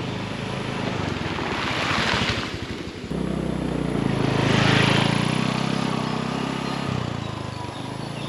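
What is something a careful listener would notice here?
A motorcycle rides past close by, rising and fading.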